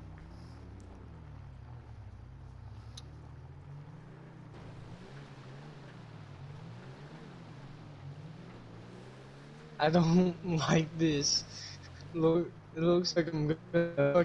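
A car engine hums and revs up and down as the car drives over rough ground.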